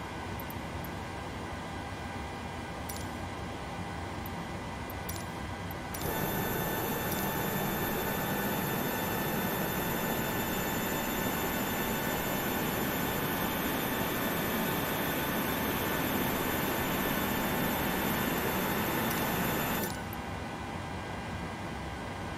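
Aircraft systems hum steadily inside a cockpit.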